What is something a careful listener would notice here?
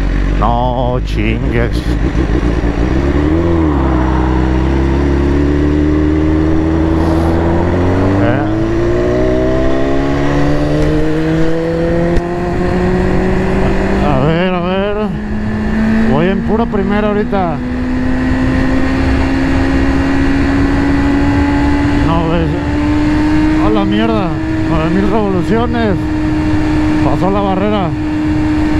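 A motorcycle engine roars and climbs in pitch through the gears.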